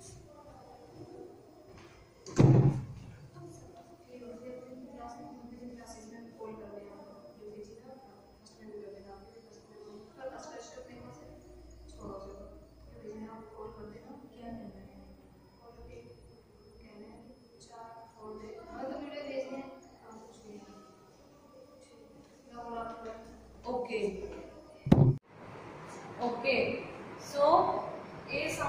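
A woman speaks calmly and clearly, as if teaching.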